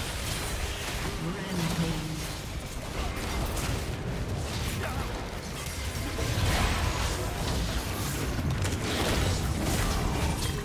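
Magic spells whoosh and crackle during a fast video game battle.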